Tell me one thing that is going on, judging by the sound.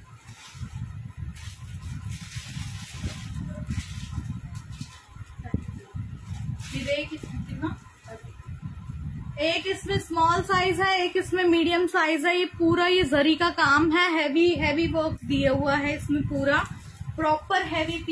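Stiff fabric rustles as it is handled.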